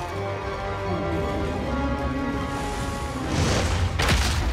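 A huge creature lets out a deep, drawn-out groan.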